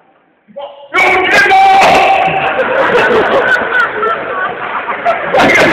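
A young man speaks into a microphone, heard over loudspeakers in a large echoing hall.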